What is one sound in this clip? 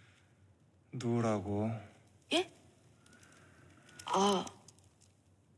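A young woman cries out sharply.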